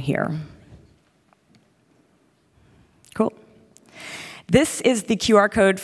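A woman speaks into a microphone over loudspeakers in a large echoing hall.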